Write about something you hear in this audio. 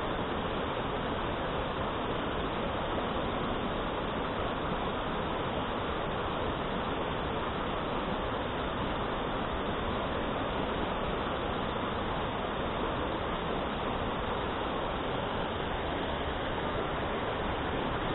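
A shallow stream rushes steadily over rocks close by.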